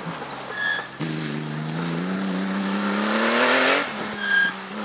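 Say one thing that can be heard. Gravel and dirt spray against a car's underside.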